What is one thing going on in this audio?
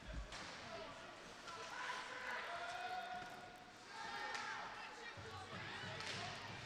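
Spectators cheer and shout in the stands.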